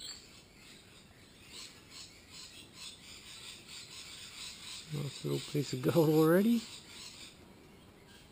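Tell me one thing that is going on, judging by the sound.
Small stones rattle and scrape in a plastic pan.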